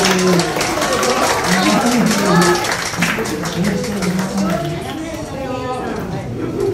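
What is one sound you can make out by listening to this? Several guitars strum along.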